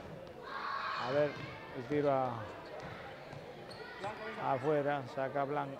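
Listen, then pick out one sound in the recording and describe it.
Young players shout to each other in a large echoing gym.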